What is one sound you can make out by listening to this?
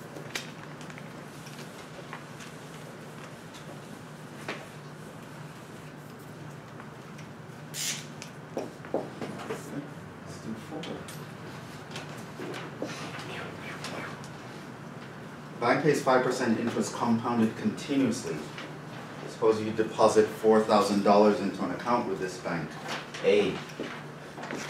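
A marker squeaks and taps on a whiteboard.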